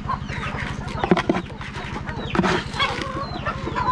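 A scoop scrapes against a metal basin of feed.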